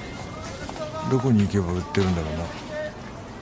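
A man asks a question in a calm voice nearby.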